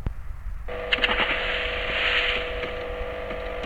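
A car splashes through water.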